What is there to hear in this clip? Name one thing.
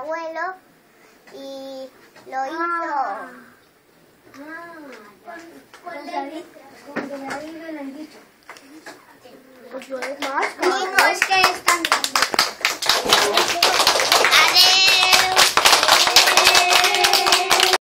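A young girl sings nearby.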